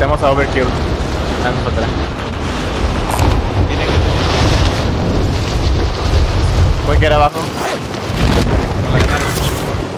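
Wind rushes loudly past during a fast fall.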